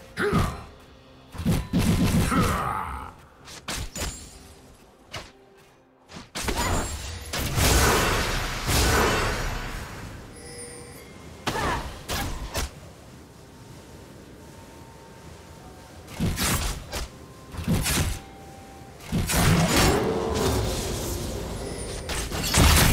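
Spell effects whoosh and crackle in a battle.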